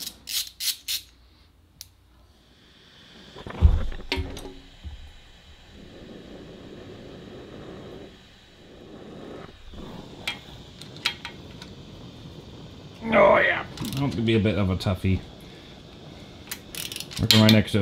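A ratchet wrench clicks as a bolt is turned.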